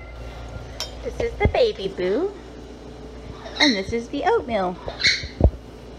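A parrot chatters and squawks up close.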